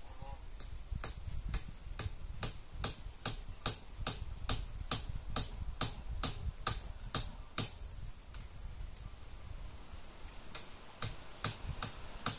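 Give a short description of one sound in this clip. A man knocks sharply and repeatedly at a table a short distance away.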